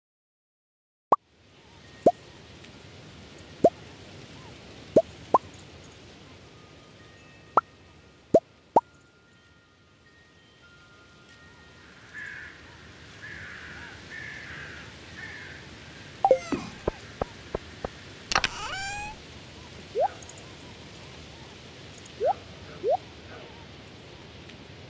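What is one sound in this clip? Short, bright game menu clicks and blips pop now and then.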